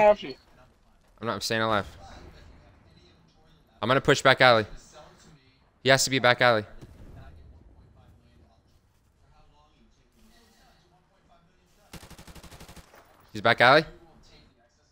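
A man talks in short, lively bursts close to a microphone.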